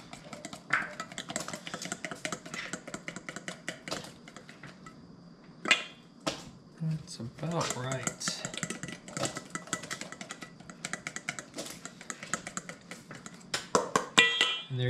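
A whisk clinks rapidly against a metal bowl.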